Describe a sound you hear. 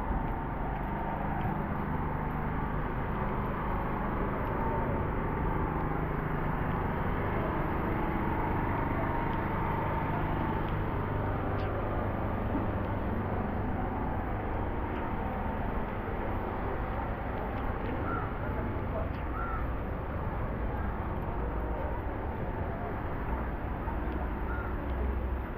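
Steady low street noise rumbles outdoors.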